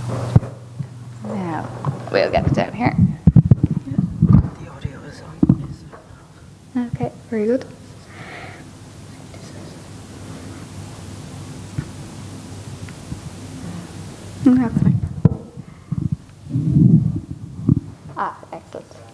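A woman speaks through a microphone in a large room.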